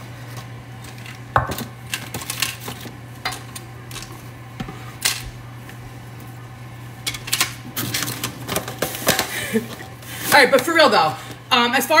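Soft paper rustles in a glass bowl.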